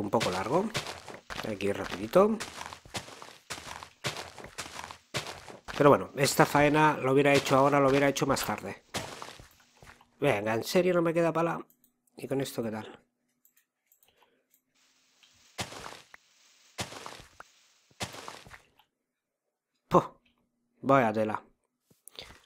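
Dirt crunches in short, repeated bursts as it is dug.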